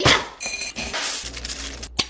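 Dry cereal rattles as it pours into a glass bowl.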